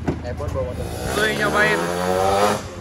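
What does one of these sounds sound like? A racing motorcycle engine revs hard and rises in pitch.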